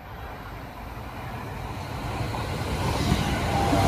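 A train approaches, rumbling louder as it draws near on the rails.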